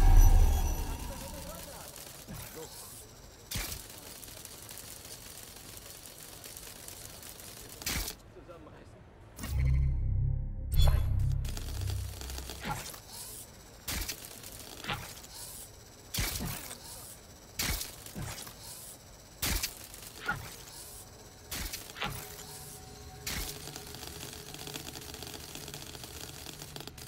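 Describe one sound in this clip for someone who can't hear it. A small robotic spider's metal legs tap and clatter on the ground.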